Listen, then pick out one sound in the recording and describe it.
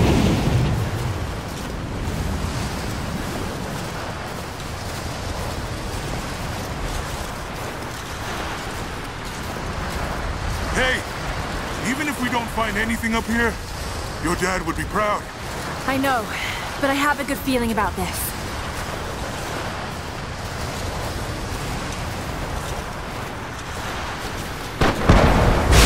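Strong wind blows and howls across an open mountainside.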